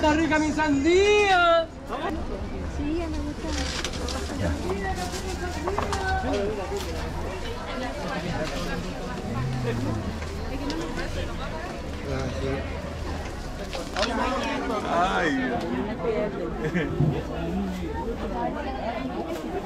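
A crowd of shoppers chatters throughout, outdoors.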